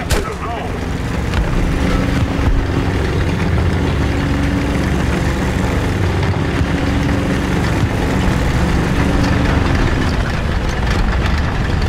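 A heavy tank engine rumbles and roars steadily.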